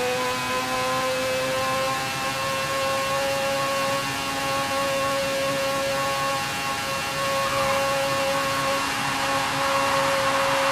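A race car engine roars at a high, steady pitch.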